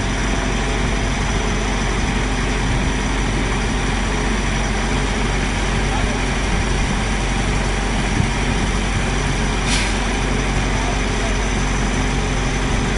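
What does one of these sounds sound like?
A crane engine rumbles steadily nearby.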